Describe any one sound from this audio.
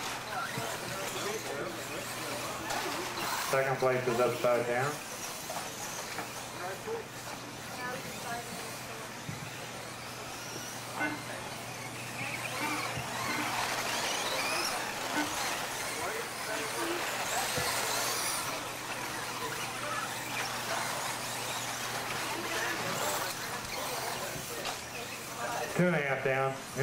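Small electric motors of toy cars whine as the cars race around.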